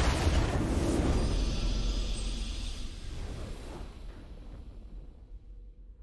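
A triumphant video game victory fanfare plays.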